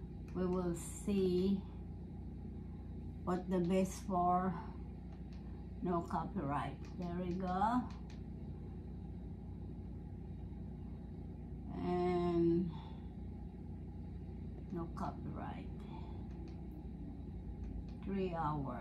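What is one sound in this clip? A woman talks calmly close by, in short phrases with pauses.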